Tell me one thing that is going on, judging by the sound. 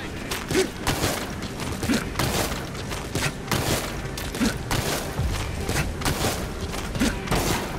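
Clothing and gear rustle and scrape as a soldier crawls across hard ground.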